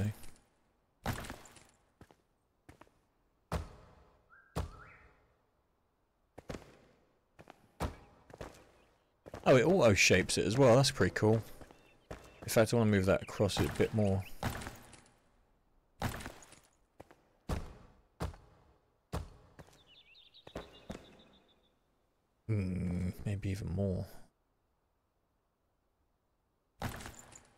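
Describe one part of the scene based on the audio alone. Heavy stone blocks thud into place, one after another.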